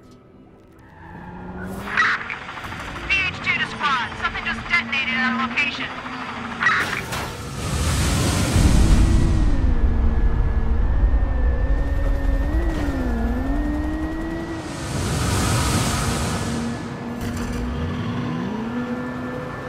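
A sports car engine hums and revs as the car drives along a street.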